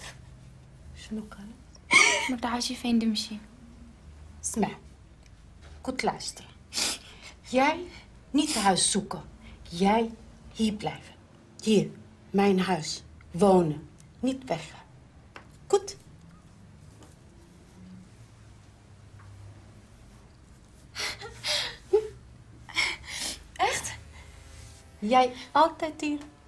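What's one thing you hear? A woman talks urgently and quietly, close by.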